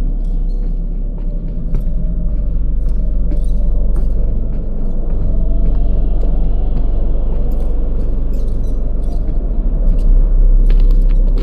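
Footsteps scuff slowly across a hard floor.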